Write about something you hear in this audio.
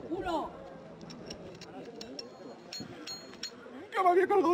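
A metal chain clinks.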